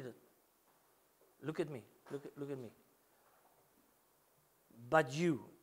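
A middle-aged man preaches with feeling through a microphone.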